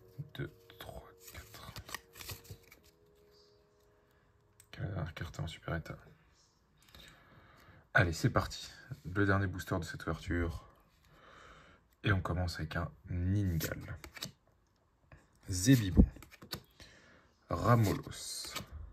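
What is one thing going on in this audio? Playing cards slide and flick against each other in someone's hands.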